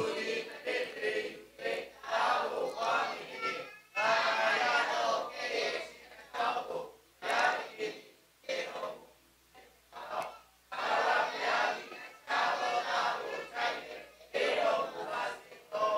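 A man speaks calmly through a microphone and loudspeakers in a large room.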